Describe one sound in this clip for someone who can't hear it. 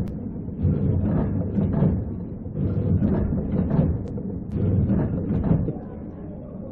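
A packing machine runs with a rhythmic mechanical thumping.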